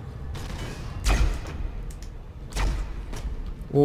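Heavy metal blows clang against armour.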